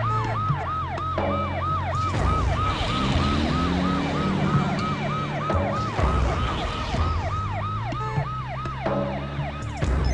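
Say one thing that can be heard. A siren wails in quick, repeating rising and falling cycles.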